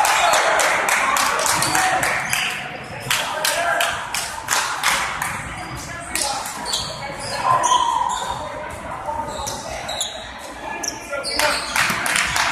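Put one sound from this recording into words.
Young men call out and chatter in a large echoing gym.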